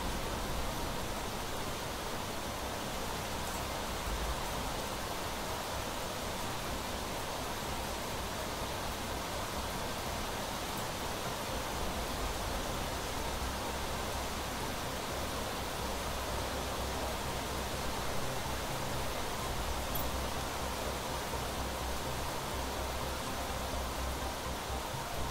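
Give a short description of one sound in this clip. Heavy rain pours down steadily in a storm.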